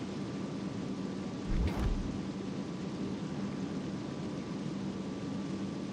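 A warship's engine rumbles steadily.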